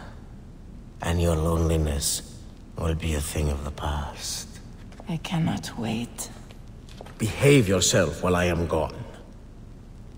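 A man speaks in a low, close voice.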